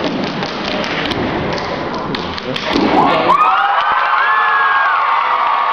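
Young dancers clap and slap their hands in rhythm.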